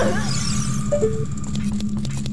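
A chain rattles as a grappling hook pulls back in.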